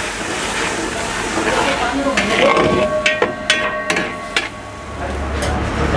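A metal spatula scrapes and clanks against a metal pan.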